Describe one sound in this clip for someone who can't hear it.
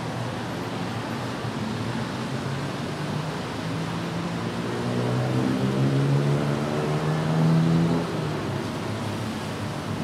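City traffic rumbles steadily on a street below.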